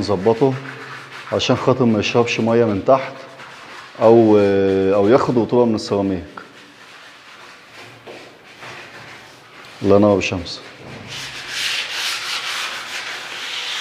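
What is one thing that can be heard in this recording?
Hands rub and sand a wooden surface with a soft scratching.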